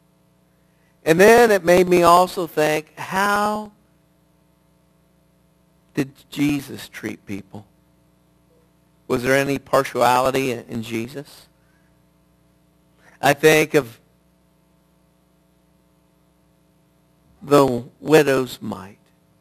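A middle-aged man speaks with animation through a microphone, pausing often.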